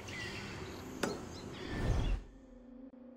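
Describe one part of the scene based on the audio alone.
An eagle flaps its wings.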